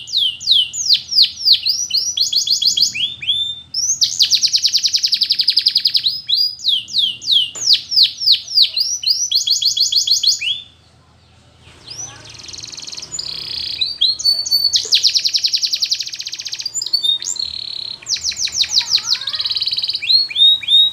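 A canary sings close by in loud, rapid trills and sweeping chirps, with a short pause partway through.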